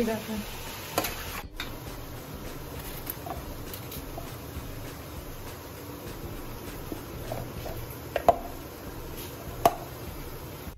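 Tomato slices drop into a steel jar with soft thuds.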